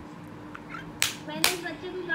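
Hands clap a few times close by.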